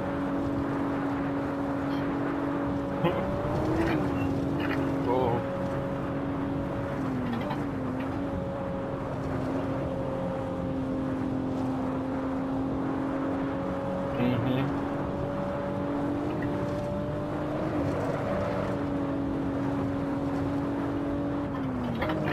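A car engine drones steadily at high revs, dipping briefly at gear changes.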